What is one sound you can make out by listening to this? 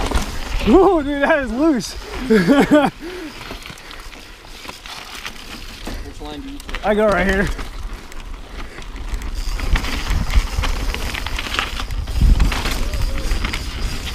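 Bicycle tyres roll and crunch over rock and dirt.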